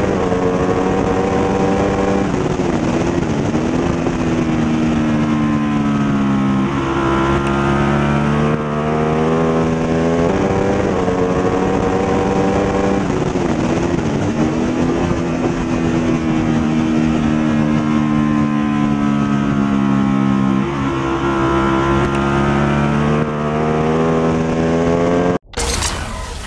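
A racing motorcycle engine screams close by, rising and falling in pitch as it shifts gears.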